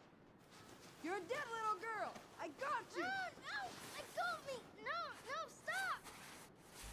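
A young girl cries out in protest, over and over.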